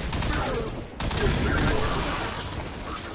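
Energy blasts crackle and boom.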